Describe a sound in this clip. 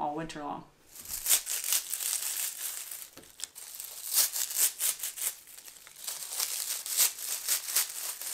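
Dry herb leaves rustle and crackle as they are stripped from stems.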